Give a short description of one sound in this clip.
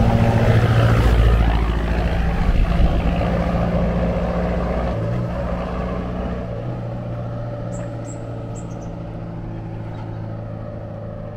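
A truck engine rumbles on the road and slowly fades into the distance.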